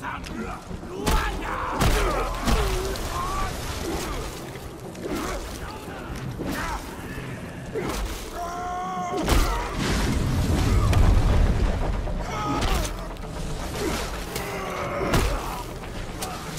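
Beasts growl and roar up close.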